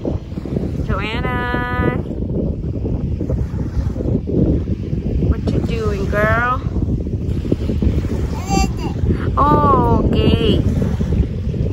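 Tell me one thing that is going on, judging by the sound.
A little girl babbles in a high voice close by.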